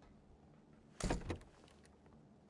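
A door bangs open.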